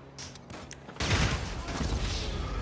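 A single gunshot bangs loudly and echoes.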